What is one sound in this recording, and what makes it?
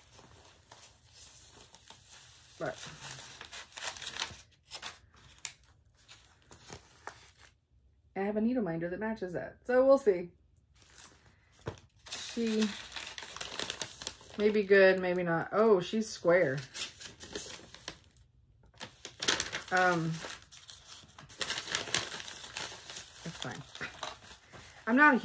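Paper and plastic packaging rustle and crinkle.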